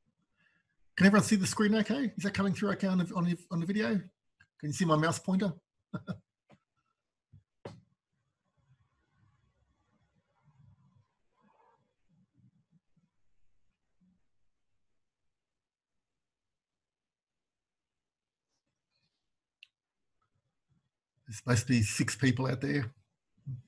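A man speaks calmly and close to a microphone, with long pauses.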